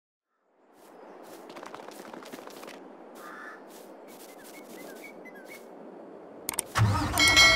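Footsteps run across grass.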